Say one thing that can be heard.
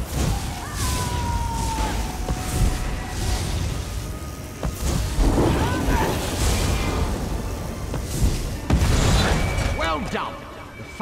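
Magic blasts crackle and boom in a loud fight.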